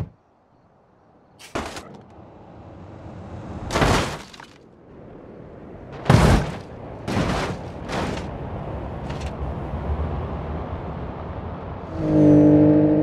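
A truck engine rumbles and roars.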